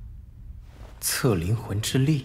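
A young man speaks.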